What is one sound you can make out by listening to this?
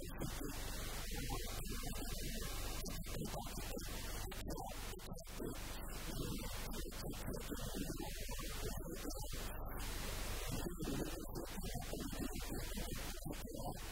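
An elderly man speaks calmly into a microphone, heard close up.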